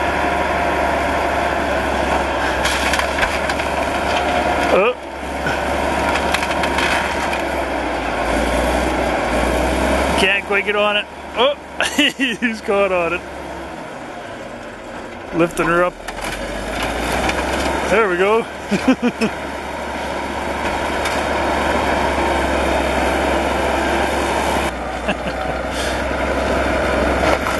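A bulldozer's diesel engine rumbles steadily close by.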